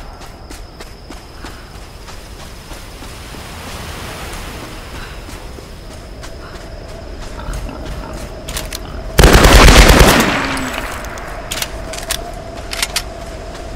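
Footsteps run over snowy ground.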